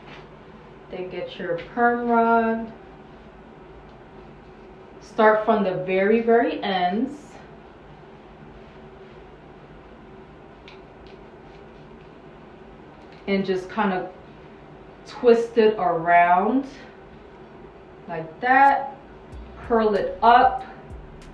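A young woman talks calmly close by, in short bursts.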